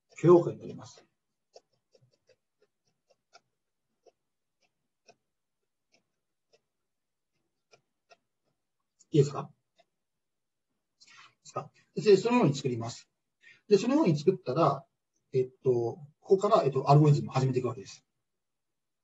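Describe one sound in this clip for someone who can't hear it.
A man speaks calmly over a microphone, in short bursts with pauses.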